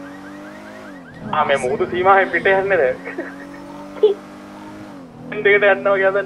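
A car engine drops in pitch as it shifts gear.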